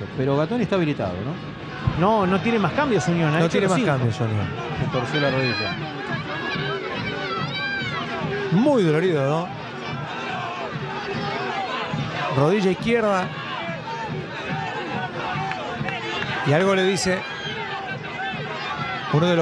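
A large stadium crowd chants and cheers in the distance.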